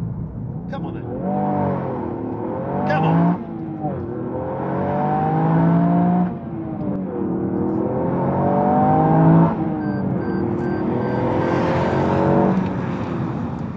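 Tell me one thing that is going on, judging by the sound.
A car engine revs hard, rising and falling through the gears.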